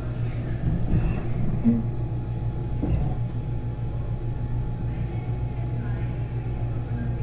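An escalator hums steadily.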